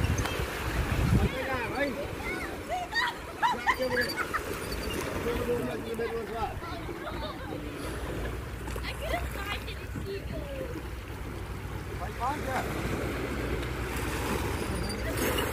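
Small waves lap gently onto a pebble shore.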